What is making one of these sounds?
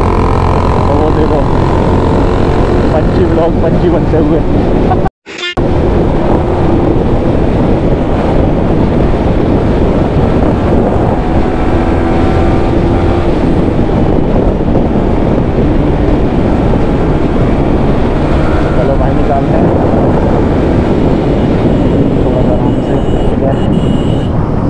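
A single-cylinder sport bike engine hums while cruising.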